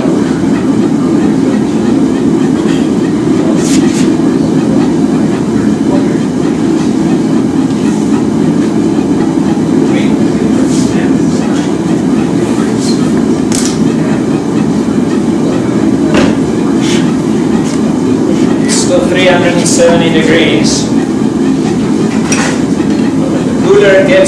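A forge fire roars steadily.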